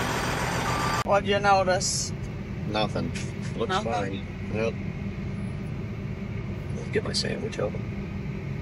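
A steady engine hum drones from inside a closed cab.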